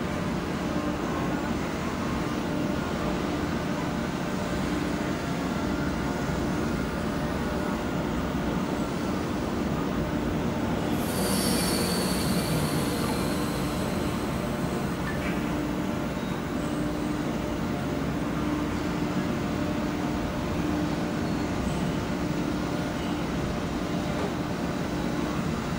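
A tugboat's engine rumbles steadily nearby.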